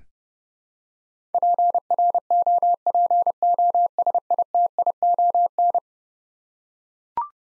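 A short tone chimes once.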